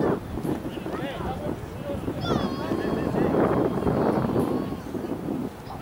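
Young players call out to each other across an open field outdoors.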